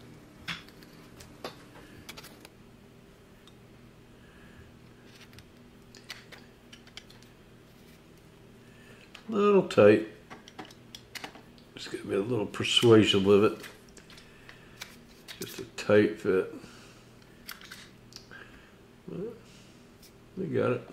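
Metal parts click and clunk softly as they are handled.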